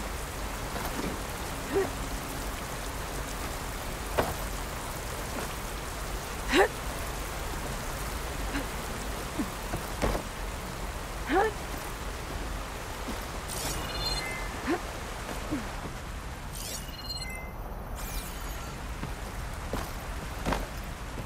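Hands and boots knock against wooden beams in short bursts.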